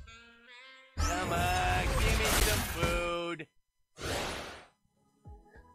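Video game battle effects clash and thump.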